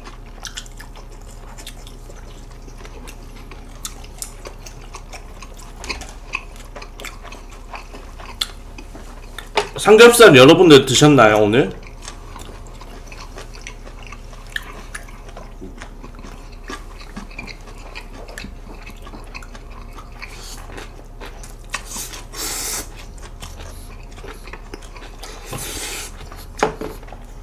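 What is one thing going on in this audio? Young men chew and smack their lips close to a microphone.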